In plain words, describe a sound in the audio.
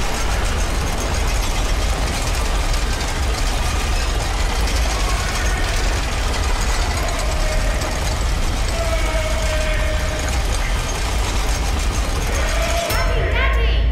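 Steam hisses and roars steadily.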